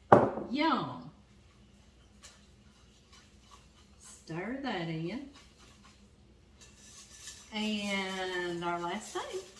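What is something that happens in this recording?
A whisk scrapes and taps against a bowl.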